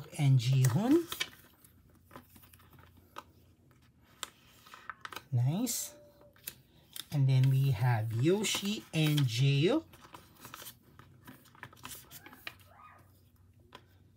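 Plastic sleeves rustle and crinkle as binder pages are turned.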